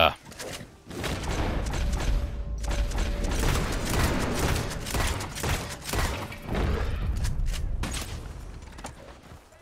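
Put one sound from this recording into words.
A bear roars loudly and growls.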